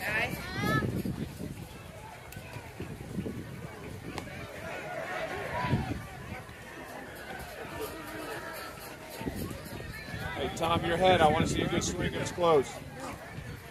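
Children shout and cheer nearby outdoors.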